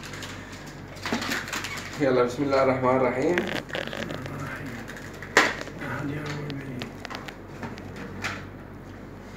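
Plastic packaging crinkles and rustles in a man's hands.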